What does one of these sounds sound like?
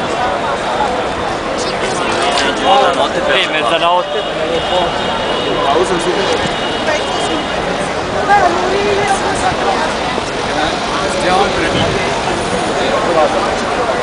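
A crowd of men and women chatter and shout nearby, outdoors.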